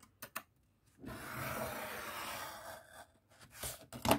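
A scoring tool scrapes along paper against a metal ruler.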